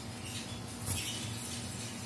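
A parrot flaps its wings briefly.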